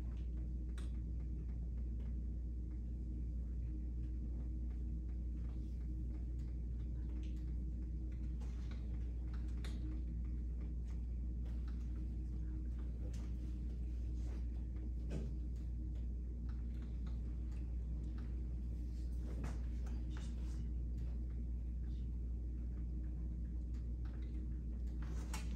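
A woman speaks calmly at a distance in a room.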